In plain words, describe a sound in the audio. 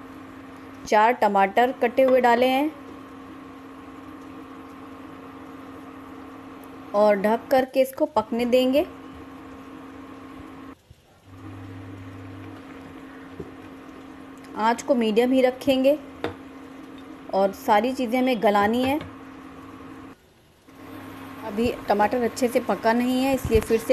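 An electric cooktop hums steadily.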